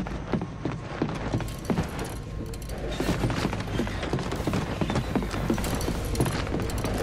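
Heavy footsteps clank steadily on a metal floor.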